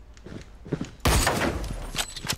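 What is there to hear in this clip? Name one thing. A rifle fires a sharp, loud shot.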